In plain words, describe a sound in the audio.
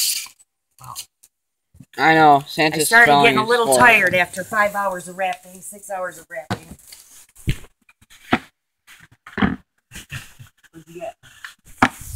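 Cardboard packaging thumps and scrapes as hands handle it.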